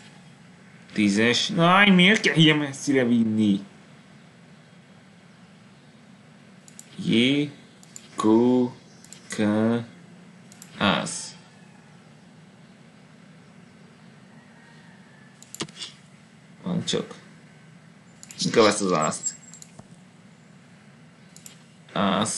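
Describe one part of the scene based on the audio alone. A woman speaks calmly into a close microphone, in short bursts with pauses.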